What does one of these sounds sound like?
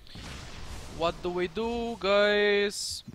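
A young man speaks loudly into a nearby microphone.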